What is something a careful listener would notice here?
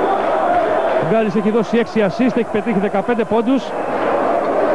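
A crowd chants loudly in rhythm.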